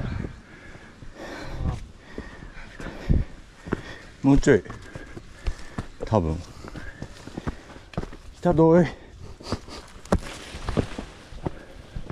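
Leafy branches brush and rustle against a passing hiker.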